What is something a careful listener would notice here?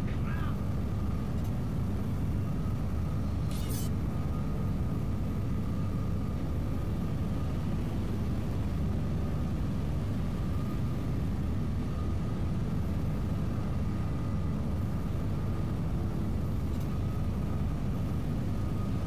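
Heavy rain pours down steadily in a strong wind.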